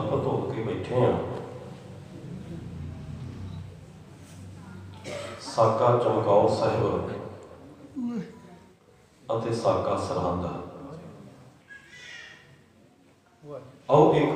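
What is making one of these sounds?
A middle-aged man speaks calmly into a microphone, his voice carried through a loudspeaker.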